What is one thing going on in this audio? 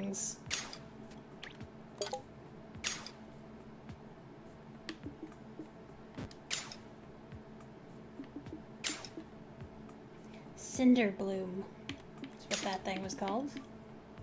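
Soft game interface blips sound as menu items are selected.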